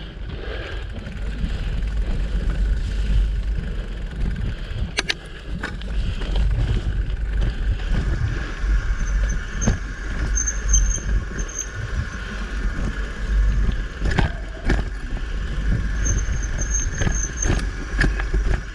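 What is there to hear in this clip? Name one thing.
Bicycle tyres roll steadily over a dirt trail.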